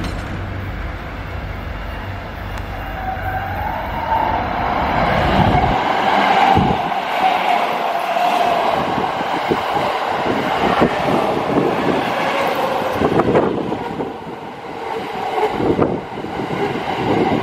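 An electric train approaches and rumbles past close by.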